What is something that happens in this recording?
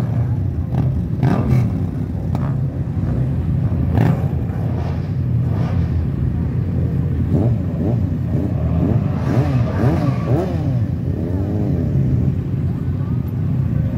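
Motorcycle engines rumble and idle nearby.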